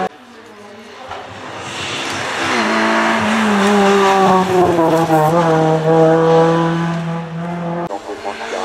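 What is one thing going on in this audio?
A rally car engine roars loudly as the car speeds up a hill and passes close by.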